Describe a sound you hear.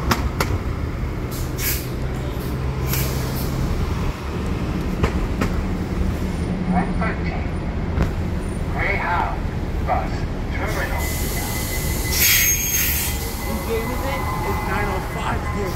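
A bus engine idles with a low rumble.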